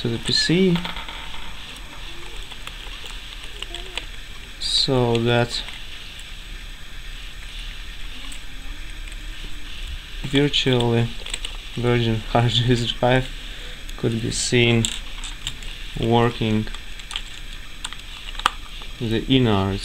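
A screwdriver turns small screws in a metal casing with faint creaks and clicks.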